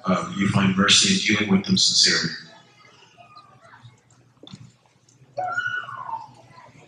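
A man speaks softly close by.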